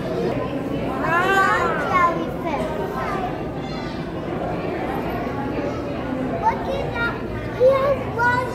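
A young child speaks excitedly nearby.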